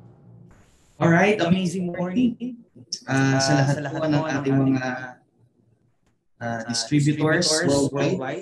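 A young man talks with animation over an online call.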